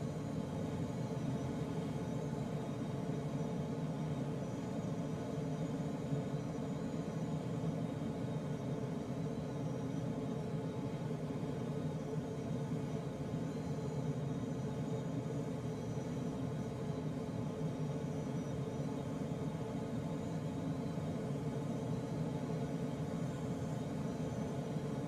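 Wind rushes steadily past a glider's canopy in flight.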